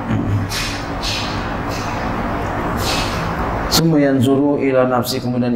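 A middle-aged man reads aloud into a microphone in a calm, chanting voice.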